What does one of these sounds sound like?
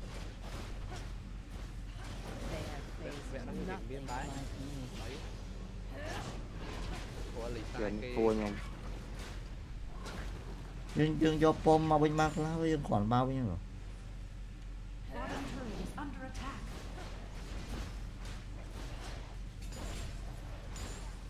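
Game sound effects whoosh and clash.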